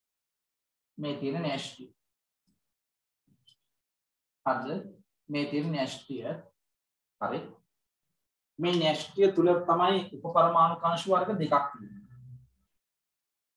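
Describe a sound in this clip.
A man speaks calmly, as if explaining.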